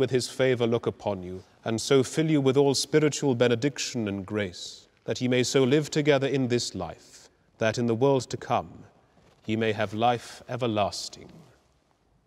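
A man speaks slowly and solemnly in a large echoing hall.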